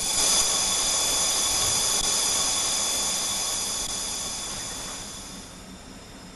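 A train's horn sounds loudly at the start and stops.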